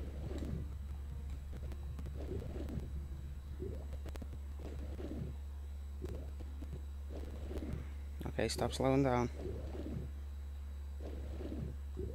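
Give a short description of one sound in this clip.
A swimmer strokes through water with soft, muffled whooshes.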